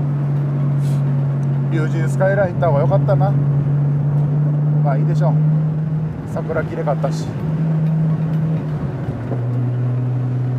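A car engine drones steadily from inside the car.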